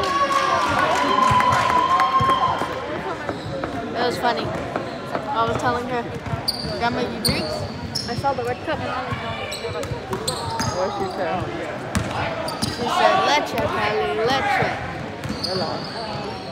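A basketball bounces on the floor in quick thuds.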